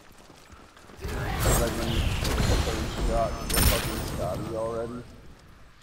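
Game spell effects whoosh and burst during a fight.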